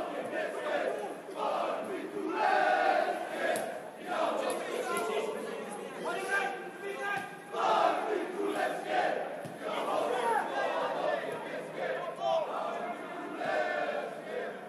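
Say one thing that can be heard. Adult men talk and call out outdoors.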